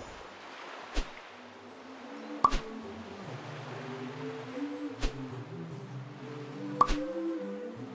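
Short interface clicks and chimes sound now and then.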